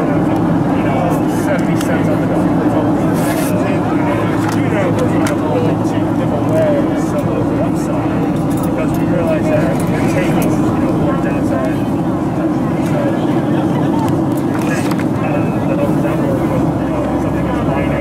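A paper card rustles and crinkles as it is pulled out and unfolded.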